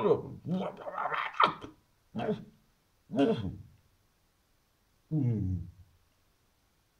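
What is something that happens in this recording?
A man speaks close up in short, emotional bursts with pauses between them.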